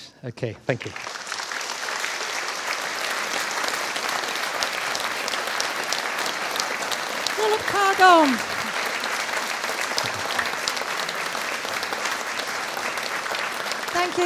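An audience applauds loudly and steadily.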